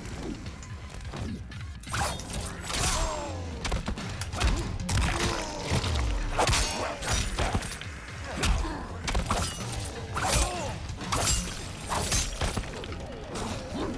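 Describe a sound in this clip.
Heavy blows and punches land with loud thuds and splatters.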